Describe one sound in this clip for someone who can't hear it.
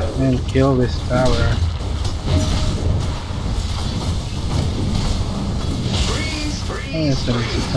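Fantasy battle sound effects clash and crackle with spells and blows.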